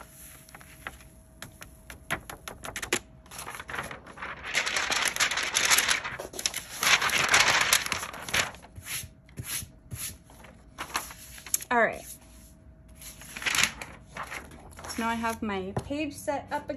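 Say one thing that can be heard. Sheets of paper rustle and crinkle as they are handled.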